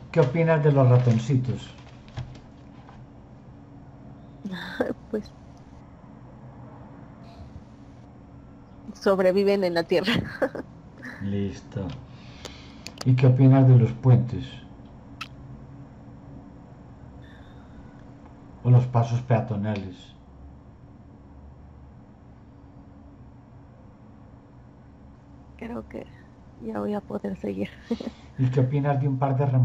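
A middle-aged man talks calmly over an online call, in short bursts with pauses.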